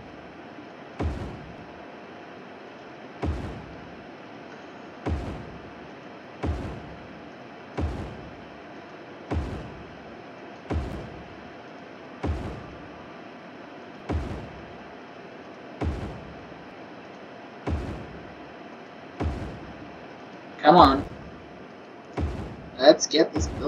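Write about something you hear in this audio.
A short thud sounds each time a building is placed, repeating every second or two.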